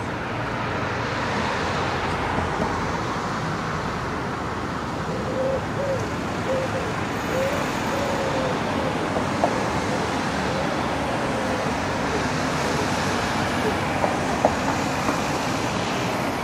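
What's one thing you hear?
Cars drive past on a street.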